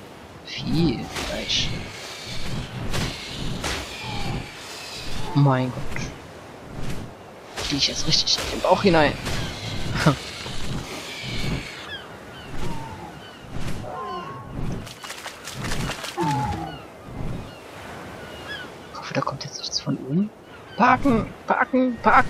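Large wings flap repeatedly.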